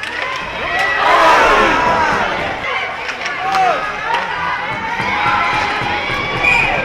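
Hockey sticks clack against a puck.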